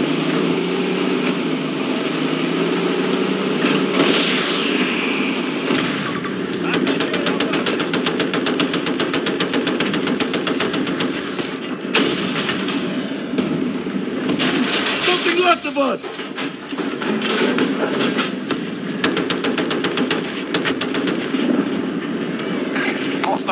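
A heavy tank engine rumbles and its tracks clank steadily.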